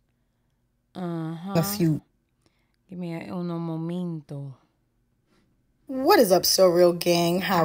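A woman speaks into a close microphone in short, animated bursts.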